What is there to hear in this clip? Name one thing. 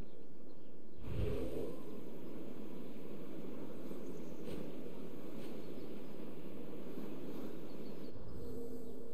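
Wind rushes steadily past a gliding eagle.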